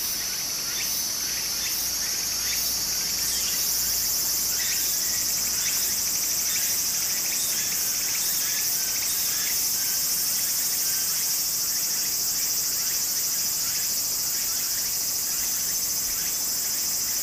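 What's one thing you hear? Shallow water trickles softly over stones.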